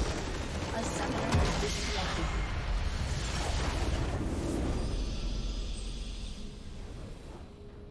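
A large structure explodes with a deep rumble.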